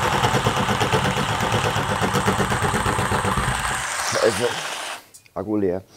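A power drill whirs loudly into the ceiling.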